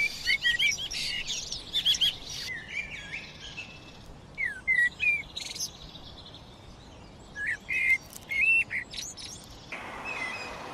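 A blackbird sings loud, fluting phrases close by.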